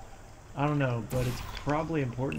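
A portal gun fires with a short electric zap.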